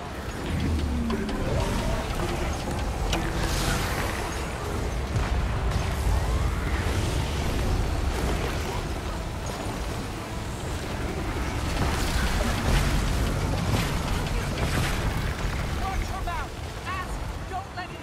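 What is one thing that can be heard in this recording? Game spell effects crash and whoosh in a busy battle.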